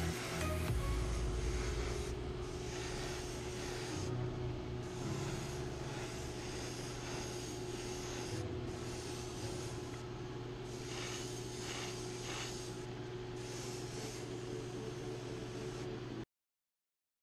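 An airbrush hisses in short bursts of spray.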